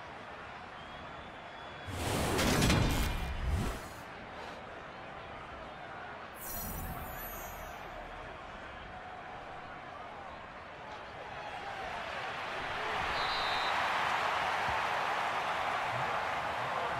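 A stadium crowd roars steadily, swelling louder toward the end.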